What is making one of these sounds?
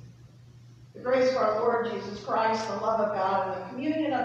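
A man speaks clearly through a microphone in a large echoing room.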